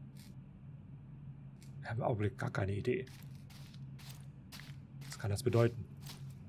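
Footsteps tap slowly on a hard floor.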